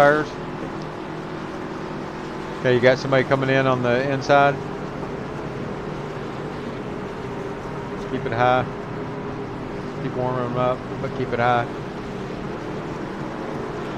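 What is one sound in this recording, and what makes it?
A racing truck's engine drones steadily at high speed.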